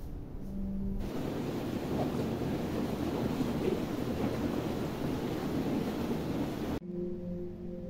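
Water bubbles and churns loudly in a whirlpool tub.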